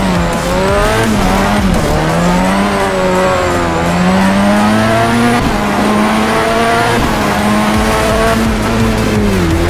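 A car engine roars loudly, revving up and dropping back between gear changes.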